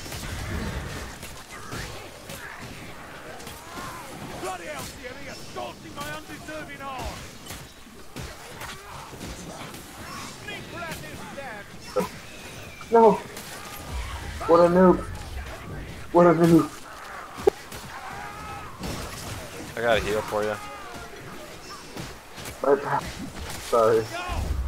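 Blades slash and thud against bodies in a close fight.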